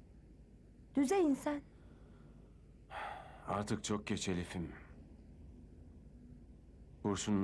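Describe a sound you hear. An elderly woman speaks softly in reply.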